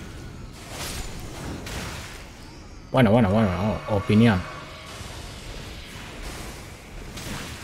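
A sword slashes and strikes with sharp hits.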